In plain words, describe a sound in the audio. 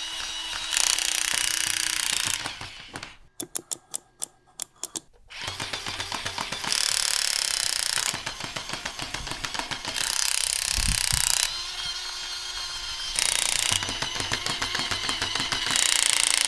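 A toy gun rattles with rapid clicking bursts.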